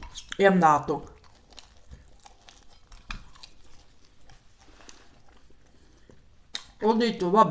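A woman chews food noisily, close to a microphone.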